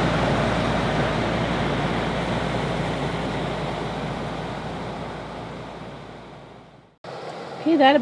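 A ceiling vent fan whirs steadily, then fades away.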